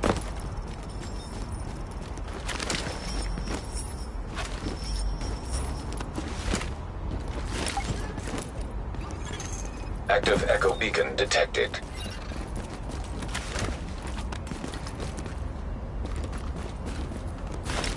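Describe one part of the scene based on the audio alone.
Footsteps crunch quickly on snow and gravel.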